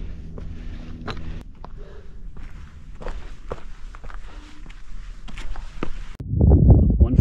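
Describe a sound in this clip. Boots scrape and crunch on loose rock.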